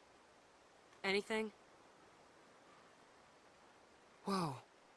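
A young woman speaks sharply and close by.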